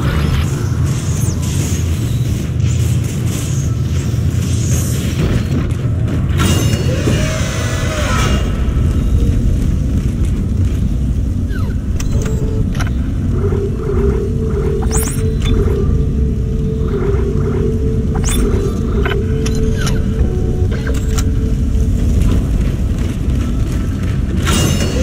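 Heavy armoured footsteps thud on a metal floor.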